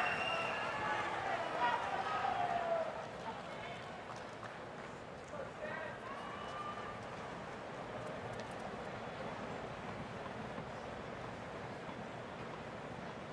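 A large crowd murmurs and chatters in an open stadium.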